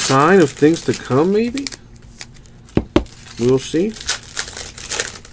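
Trading cards rustle and slide against each other in someone's hands.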